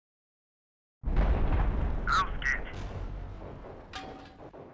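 An explosion booms loudly and rumbles away.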